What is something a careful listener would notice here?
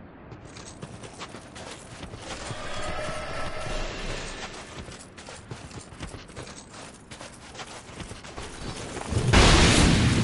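Armoured footsteps crunch through snow.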